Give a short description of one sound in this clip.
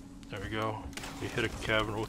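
An electric zap crackles.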